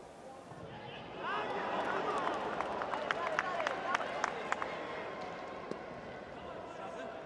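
A large crowd roars and whistles across an open stadium.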